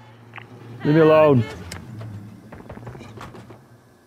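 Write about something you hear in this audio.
A car door opens with a clunk.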